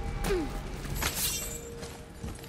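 A heavy body lands with a loud thud.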